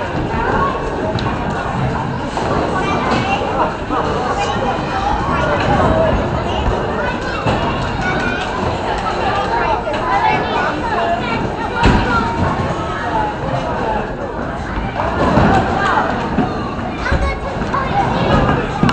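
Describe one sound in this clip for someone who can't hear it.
Voices of children and adults chatter throughout, echoing in a large hall.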